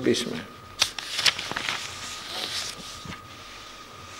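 Paper rustles as a book's page is turned.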